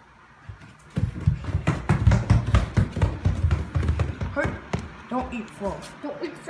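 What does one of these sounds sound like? A dog's paws thump quickly up wooden stairs.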